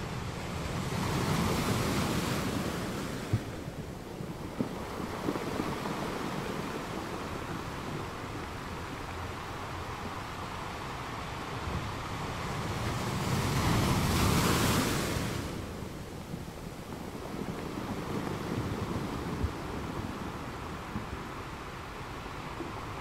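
Foamy water washes and swirls steadily around rocks.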